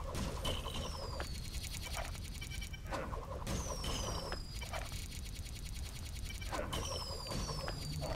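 Bricks burst apart with a clatter.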